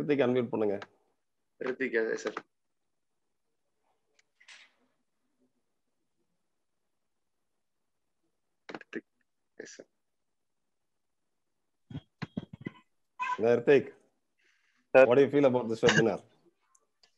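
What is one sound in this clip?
A middle-aged man speaks calmly over an online call, with pauses.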